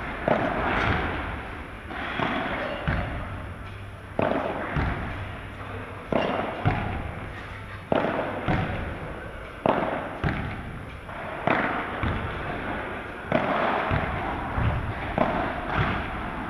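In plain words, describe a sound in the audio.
A ball bounces on the court and off glass walls.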